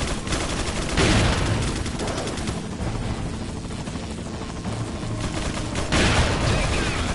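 A shotgun fires with a loud, booming blast.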